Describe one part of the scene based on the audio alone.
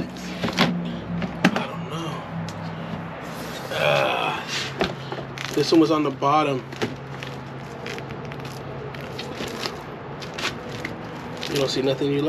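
Plastic binders rustle and knock together in a plastic tote.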